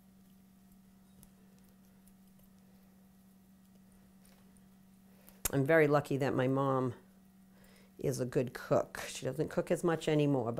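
Pieces of brownie drop softly into a glass bowl.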